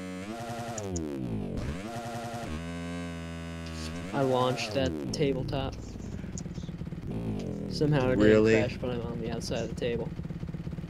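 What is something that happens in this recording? A dirt bike engine revs up and down.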